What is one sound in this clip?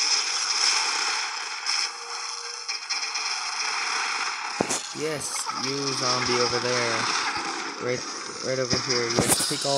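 Cartoon battle sound effects pop, zap and whoosh throughout.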